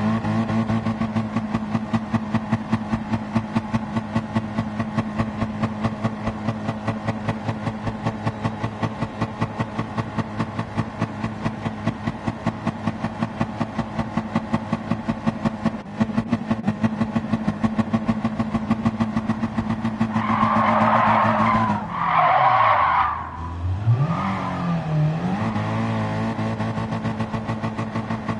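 A car engine drones at a steady high pitch, then drops and rises again.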